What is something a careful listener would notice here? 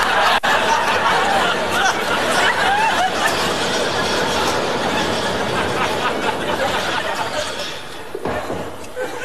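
A crowd of men chatters and bustles loudly.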